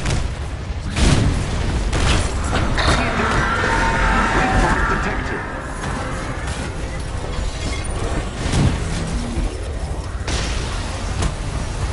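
Explosions boom and roar.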